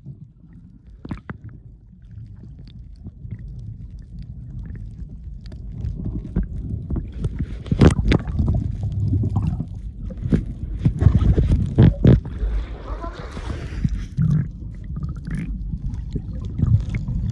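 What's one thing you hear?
Muffled underwater rumbling and bubbling surrounds the listener.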